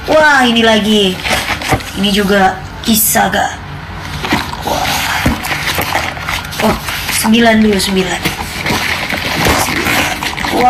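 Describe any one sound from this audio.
Cardboard packaging rustles and scrapes as hands handle it.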